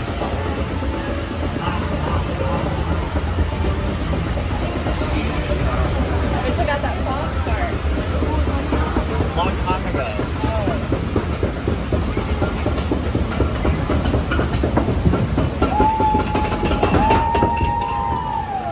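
A ride car rumbles steadily along its track.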